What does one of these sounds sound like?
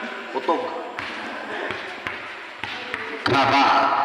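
A basketball bounces on a concrete floor in an echoing hall.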